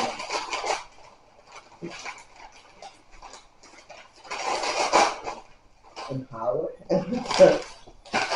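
Wrapping paper crinkles as a gift is unwrapped.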